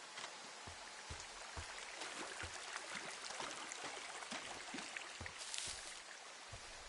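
Feet splash and wade through shallow water.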